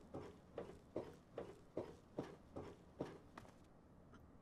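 Footsteps thud at an even pace on a hard surface.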